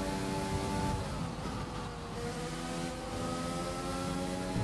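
A racing car engine drops in pitch as the car brakes, then revs up again.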